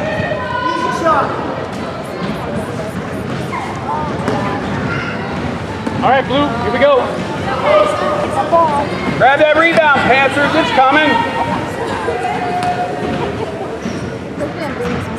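A crowd of people chatters in a large echoing gym.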